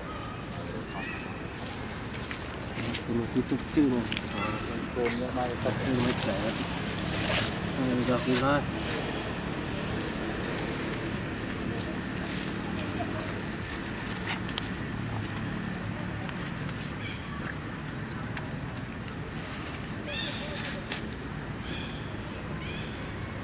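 A baby monkey squeaks in short high calls.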